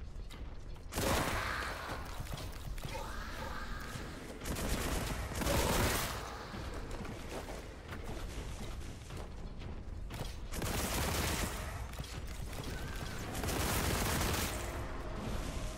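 A weapon blasts flames with loud roaring bursts.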